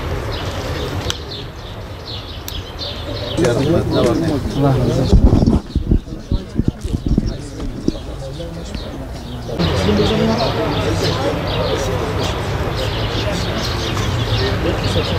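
Several men talk quietly nearby outdoors.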